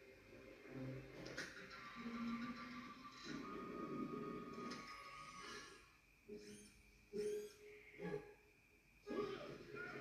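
Slot reels whir and click as they spin and stop.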